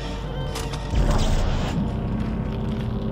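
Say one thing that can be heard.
A weapon fires with a sudden burst.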